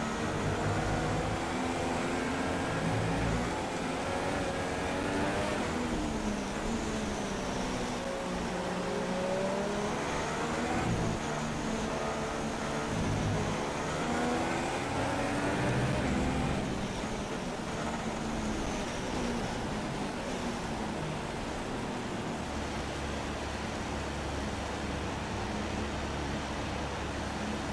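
A racing car engine hums and revs up and down.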